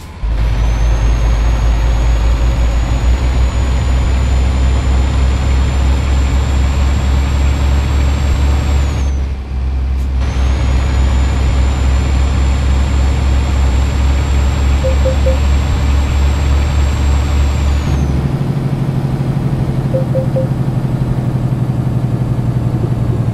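A truck engine drones steadily, briefly dropping away and changing pitch as gears shift.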